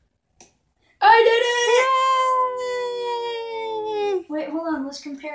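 A teenage boy cheers loudly and excitedly.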